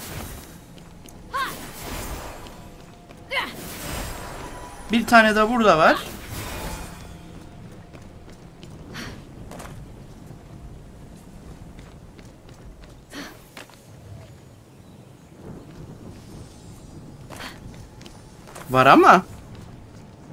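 Quick footsteps patter on stone.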